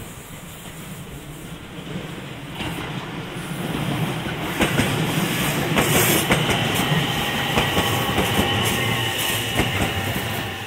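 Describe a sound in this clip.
A train approaches and rumbles past, growing louder.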